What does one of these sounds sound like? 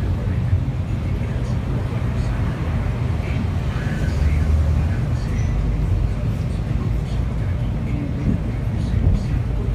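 City traffic passes outside.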